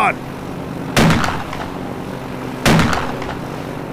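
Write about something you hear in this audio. A shotgun fires two loud blasts.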